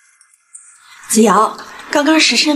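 A middle-aged woman speaks briskly close by.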